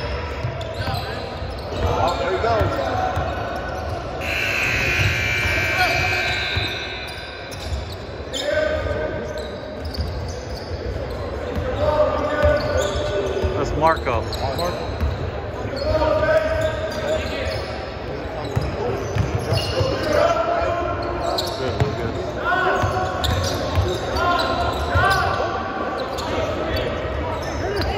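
Sneakers squeak on the gym floor.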